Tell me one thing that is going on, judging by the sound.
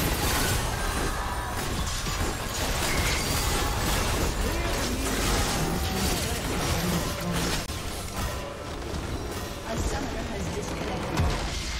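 Game spell effects whoosh and clash in a busy battle.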